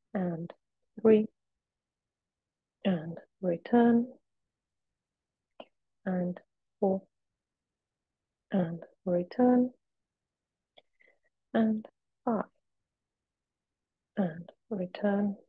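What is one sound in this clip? A woman speaks calmly and clearly into a close microphone, giving instructions in short phrases.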